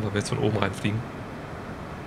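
A man speaks briefly and calmly into a microphone.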